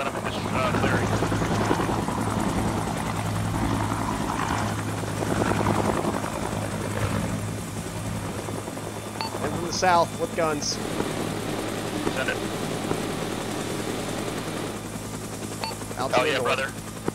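A helicopter's rotor thumps and its engine drones steadily.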